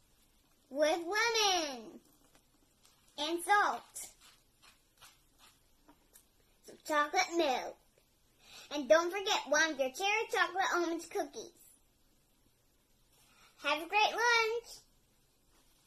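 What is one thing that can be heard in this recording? A little girl talks close by in short, lively bursts.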